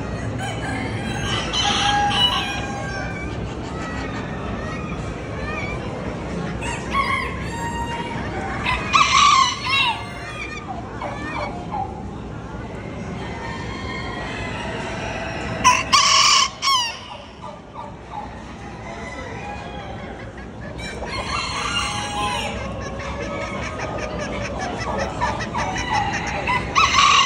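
Many hens cluck and chatter throughout.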